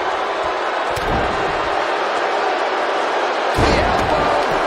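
A body thuds heavily onto the ring mat.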